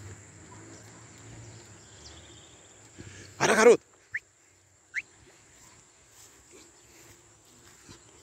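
A dog paddles through river water with soft splashes.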